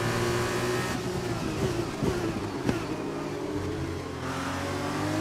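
A racing car engine drops in pitch and pops as the car brakes and shifts down.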